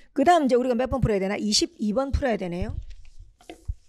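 A young woman speaks with animation through a microphone.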